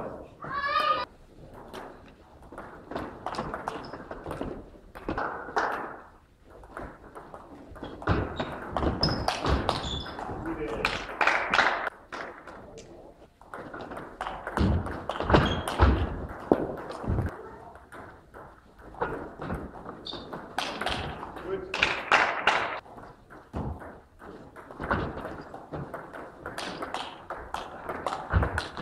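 A table tennis ball clicks back and forth between paddles and table in an echoing hall.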